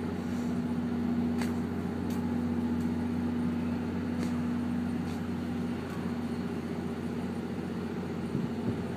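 A train engine idles with a low, steady hum.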